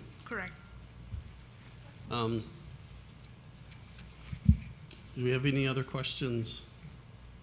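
An older man speaks calmly into a microphone, in short bursts with pauses.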